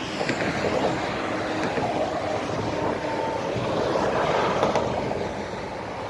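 A heavy truck rumbles by close up.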